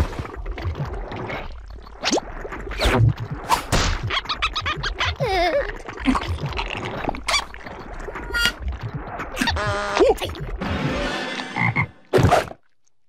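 A second cartoon creature chatters and grunts back excitedly.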